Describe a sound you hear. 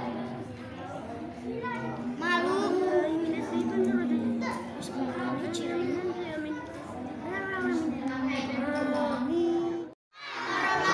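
A young girl chants a recitation in a high voice through a microphone.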